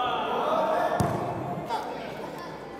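A soccer ball is kicked and thuds on a hard floor.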